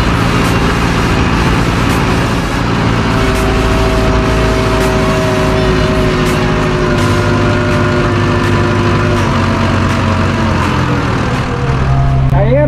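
A tractor engine rumbles loudly outdoors in the open.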